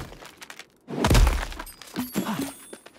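A bright magical chime rings out as an item is picked up.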